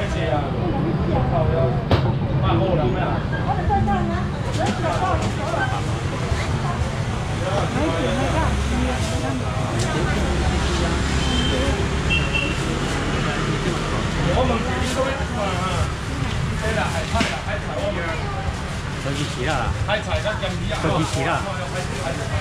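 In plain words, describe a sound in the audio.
Plastic bags rustle as food is packed.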